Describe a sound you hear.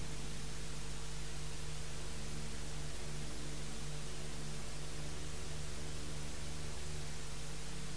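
Paper pages rustle as a file is handled.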